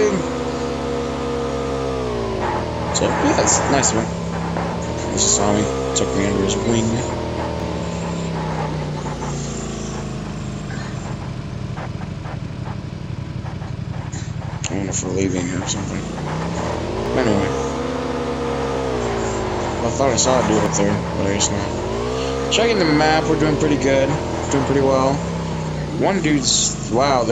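A motorbike engine drones steadily, revving up and down.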